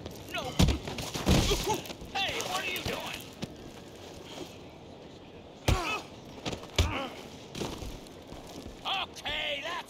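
A man groans and shouts in pain.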